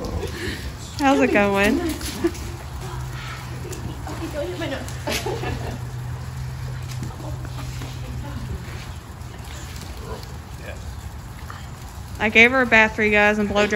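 A dog whines and yelps excitedly.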